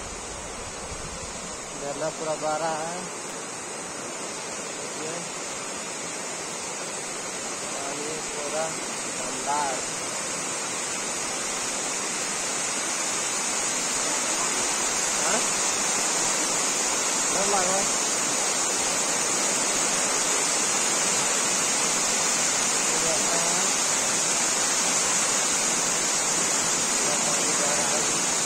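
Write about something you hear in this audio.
Water rushes steadily down a weir and splashes into a stream, growing louder.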